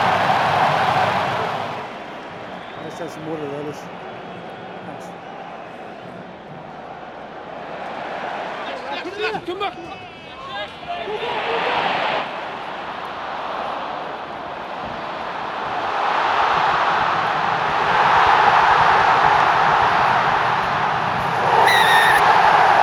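A large crowd roars and cheers in a stadium, rising and falling in waves.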